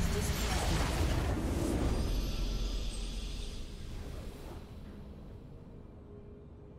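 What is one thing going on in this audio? A triumphant game fanfare swells and fades.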